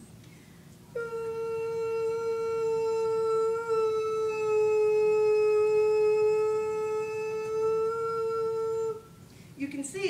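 A steady electronic tone plays through a loudspeaker.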